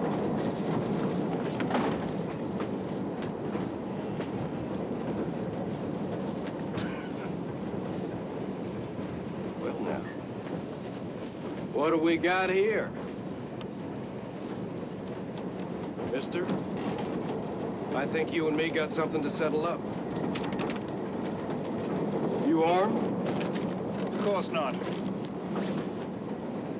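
A train rumbles steadily along its tracks.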